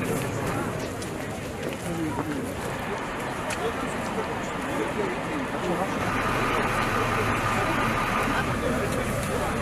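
A crowd of men and women murmurs and talks nearby outdoors.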